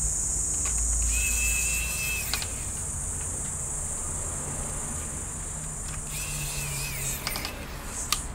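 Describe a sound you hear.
A brush sweeps over a circuit board in short strokes.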